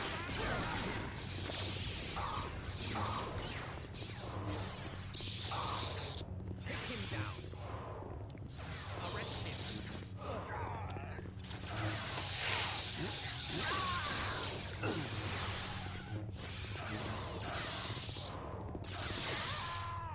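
Lightsabers hum and swoosh as they swing.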